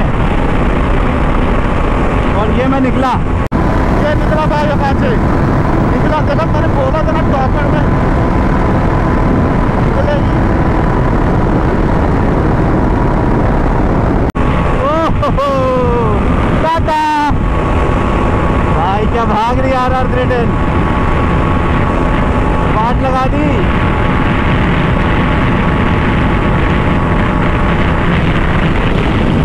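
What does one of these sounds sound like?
Wind roars loudly past at high speed.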